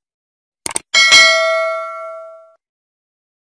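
A bell chimes and rings out, slowly fading.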